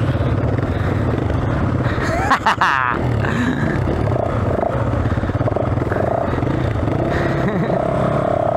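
A second dirt bike engine putters a short way ahead.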